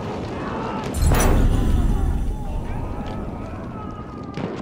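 A heavy explosion booms nearby and rumbles away.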